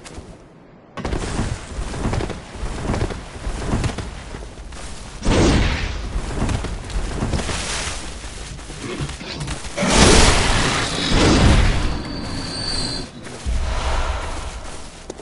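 Blades slash and strike in a fierce fight.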